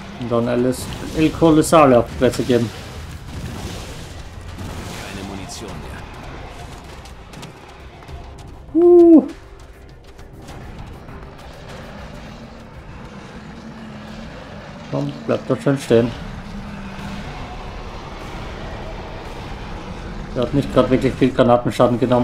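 Fiery explosions boom in a video game.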